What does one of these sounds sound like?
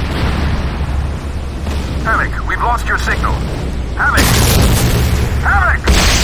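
An energy weapon crackles and zaps.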